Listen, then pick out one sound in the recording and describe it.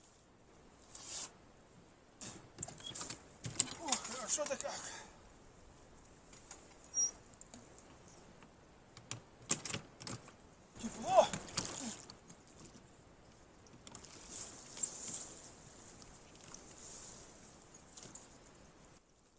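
A pole splashes and knocks against a small wooden boat in shallow water.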